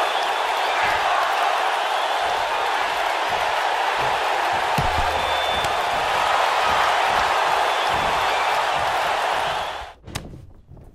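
A crowd cheers loudly and steadily in a large arena.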